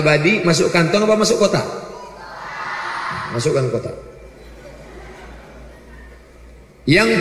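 A man speaks with animation into a microphone, his voice ringing through a hall's loudspeakers.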